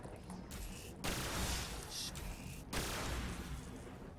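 A loud blast bursts out.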